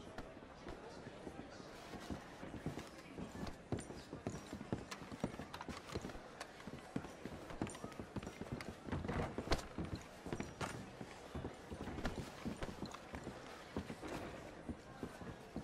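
Boots step softly along a carpeted aisle.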